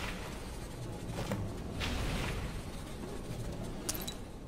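A magic spell whooshes and hums.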